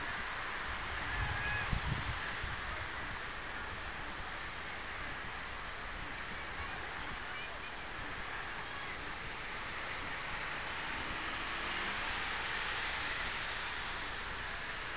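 A crowd chatters and murmurs at a distance outdoors.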